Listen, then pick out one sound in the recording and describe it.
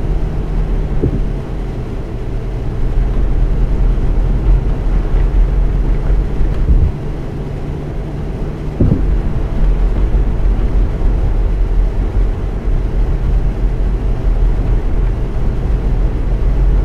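A bus engine hums low and steady as it drives.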